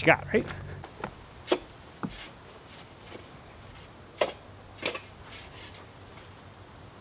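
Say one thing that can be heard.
Stones knock and scrape as they are set in place.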